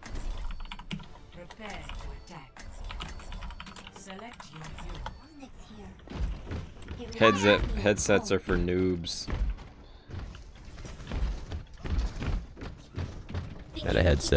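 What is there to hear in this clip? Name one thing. Keyboard keys clatter close by.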